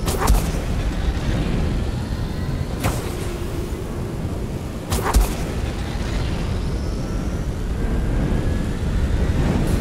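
Electric sparks crackle and spit from a hanging machine.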